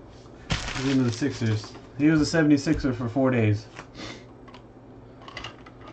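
Card packs crinkle as they are handled.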